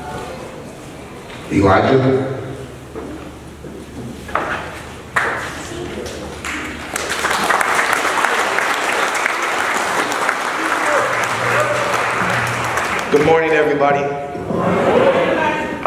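A young man speaks into a microphone, heard over loudspeakers in a large room.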